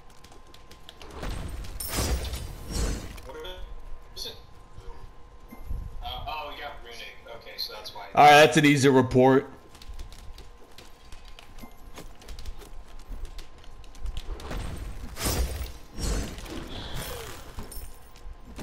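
Magic blasts whoosh and crackle in short bursts.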